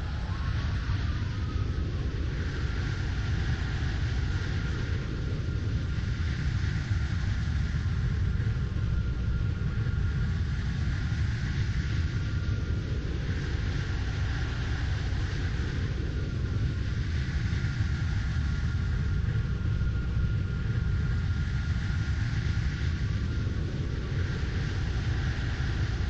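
A jet airliner's engines roar steadily as it rolls along a runway.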